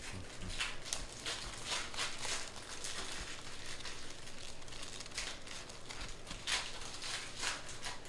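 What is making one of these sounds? A foil pack crinkles as it is torn open.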